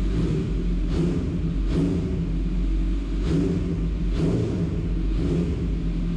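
A quad bike engine idles with a steady low rumble in an echoing enclosed space.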